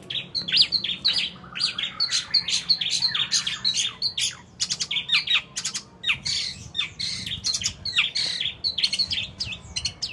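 A songbird sings loud, rapid chirps and whistles close by.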